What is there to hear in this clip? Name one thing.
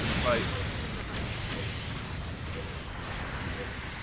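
Rocket thrusters hiss and roar.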